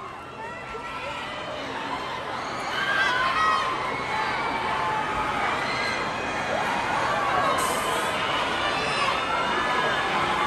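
A crowd cheers and shouts in a large, echoing hall.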